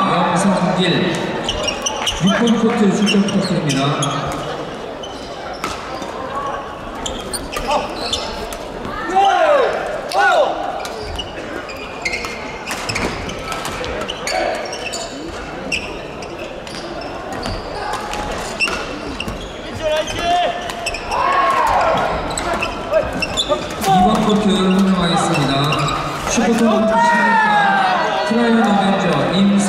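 Many people chatter and call out across the hall.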